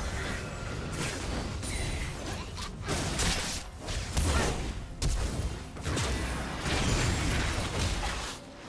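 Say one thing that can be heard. Video game combat sound effects crackle with spell blasts and hits.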